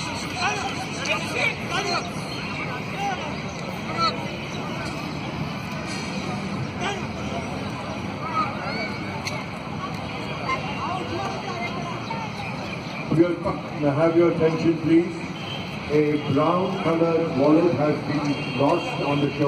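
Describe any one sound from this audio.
A crowd of spectators murmurs and chatters outdoors.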